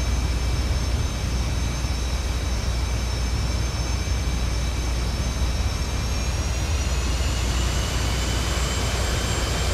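A jet engine roars steadily at close range, with a high whine that slowly rises in pitch.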